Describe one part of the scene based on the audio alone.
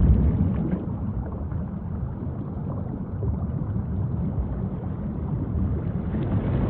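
Wind rumbles steadily over open water.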